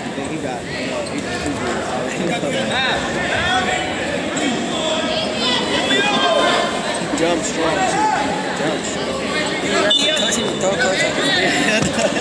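A crowd of spectators shouts and cheers in an echoing hall.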